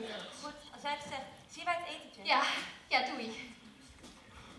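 A young woman speaks loudly and with animation in a large hall.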